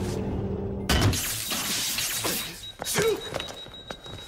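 A young man shouts a command.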